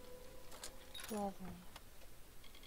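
A lock snaps open with a sharp click.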